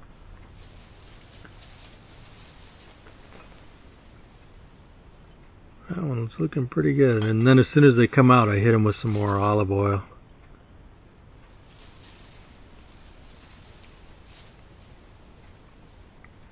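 Baking paper rustles as hands handle flatbreads.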